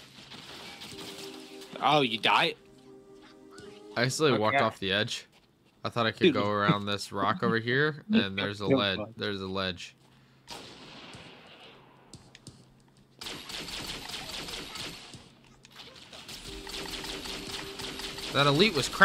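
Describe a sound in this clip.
An energy weapon fires with sharp zaps.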